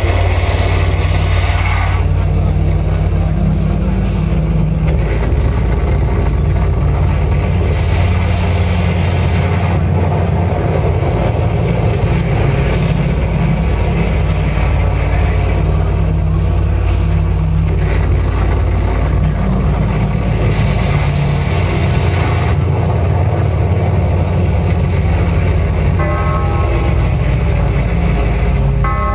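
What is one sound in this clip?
A loud metal band plays with heavy distorted electric guitars and a booming bass.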